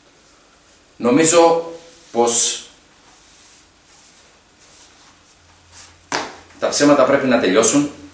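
A man speaks into a microphone in bursts, with pauses between.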